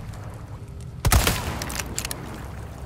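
A gun fires a single loud shot that rings out briefly.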